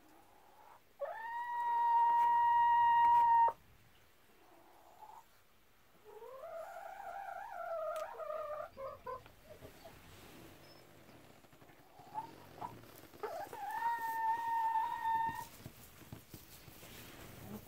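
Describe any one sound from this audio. Hens cluck and call close by.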